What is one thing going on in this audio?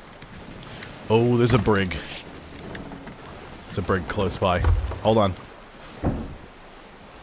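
A man talks into a close microphone in short bursts.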